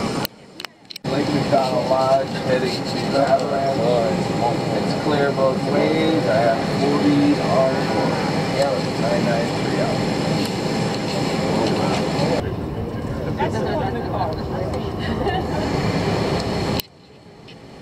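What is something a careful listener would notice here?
Elderly men and women chat and talk over one another nearby.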